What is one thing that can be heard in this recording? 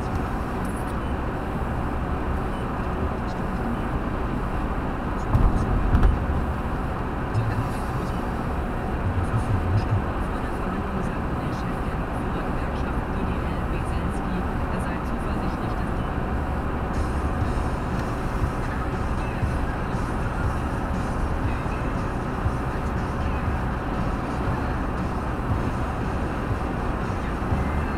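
A car engine hums steadily as the car drives along a motorway.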